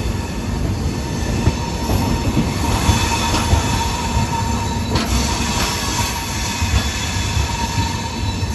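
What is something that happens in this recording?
A train rumbles and rattles steadily along the tracks.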